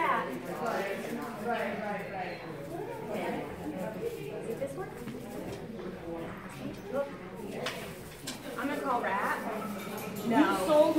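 A woman talks to a dog.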